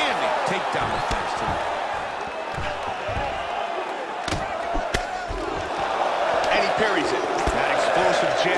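Kicks and punches land with heavy thuds.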